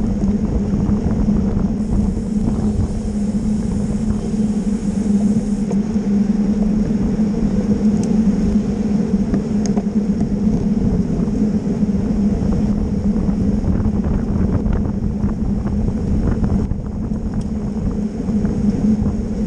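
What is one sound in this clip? Bicycle tyres hum steadily on smooth pavement.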